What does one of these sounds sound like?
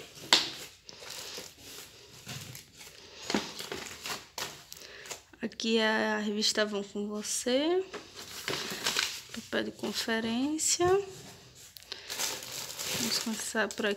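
Plastic wrapping crinkles under a hand.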